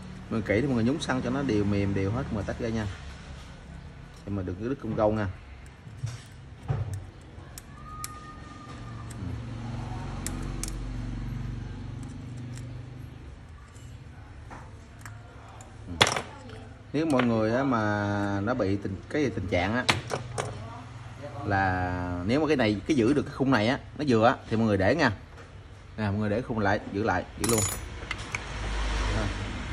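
Small plastic parts click and tap against a hard surface.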